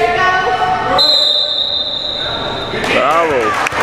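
A referee blows a long, shrill whistle.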